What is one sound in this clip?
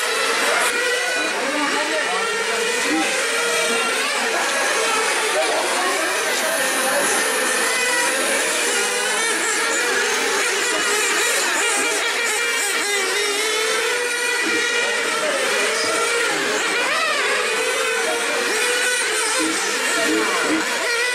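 Electric model race cars whine as they speed past, rising and falling in pitch.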